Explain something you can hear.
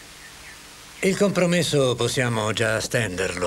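Another man speaks calmly from across the room.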